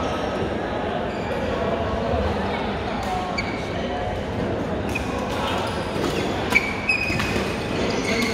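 A large hall echoes with a steady murmur of many players.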